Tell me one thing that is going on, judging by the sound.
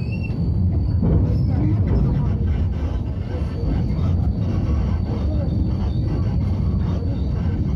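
Another tram passes close by with a deep rumble.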